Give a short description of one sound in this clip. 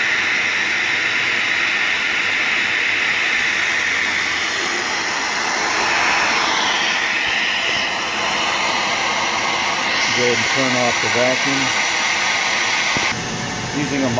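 A grinding wheel whines steadily against metal.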